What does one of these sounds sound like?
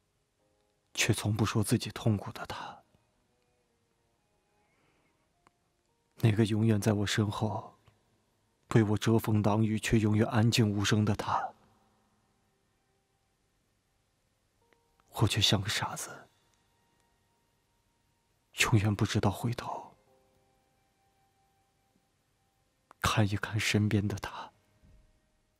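A young man speaks softly and sadly, close to the microphone, in short phrases with pauses.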